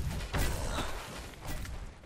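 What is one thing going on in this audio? Fire bursts with a loud whoosh.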